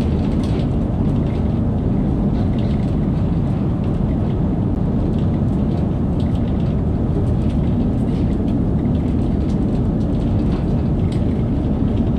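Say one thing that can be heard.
A train rumbles steadily at speed through a tunnel.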